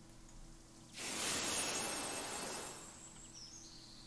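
A puff of gas hisses out in a short burst.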